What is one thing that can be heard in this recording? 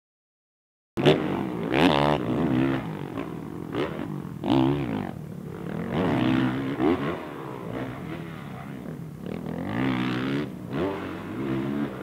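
A motocross bike engine revs and roars loudly, rising and falling in pitch.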